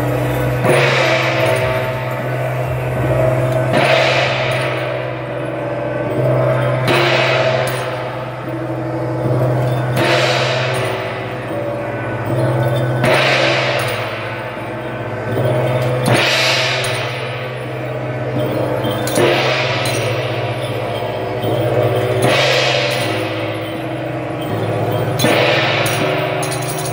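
A large gong is struck at a slow, steady pace, each stroke ringing out and slowly fading.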